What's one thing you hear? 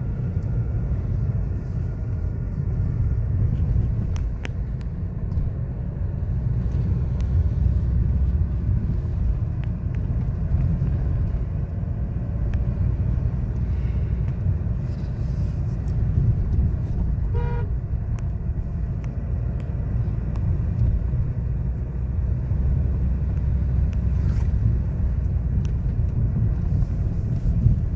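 A car engine rumbles low and steady inside a moving car.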